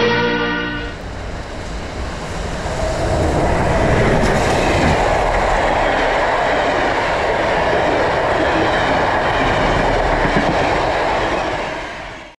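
A steam train rumbles and clatters loudly along the tracks close by.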